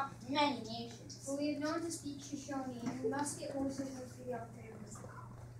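A boy speaks loudly in a play, in a room with a slight echo.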